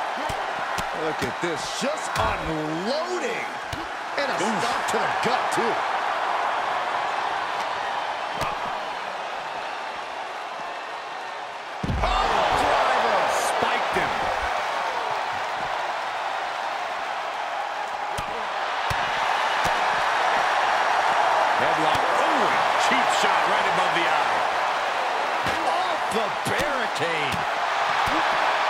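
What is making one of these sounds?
A large crowd cheers and roars loudly throughout.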